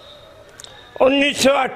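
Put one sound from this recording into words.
An elderly man speaks calmly into a microphone close by.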